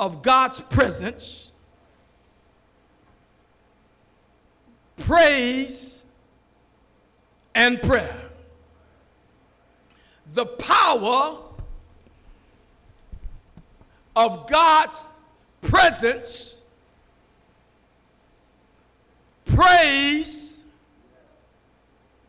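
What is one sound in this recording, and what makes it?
A man preaches with passion into a microphone in short, loud bursts, with pauses between them.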